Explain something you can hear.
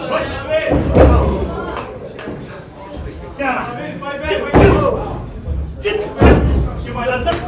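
Loud slaps from chest strikes ring out in an echoing room.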